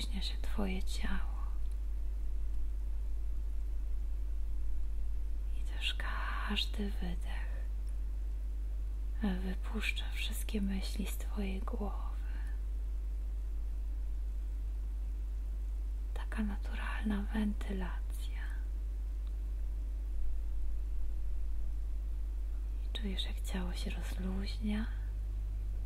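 A woman speaks calmly and slowly through a headset microphone on an online call, with long pauses.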